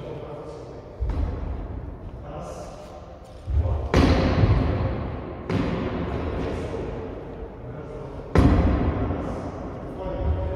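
Sharp knocks ring out, each followed by a long echo in a large hall.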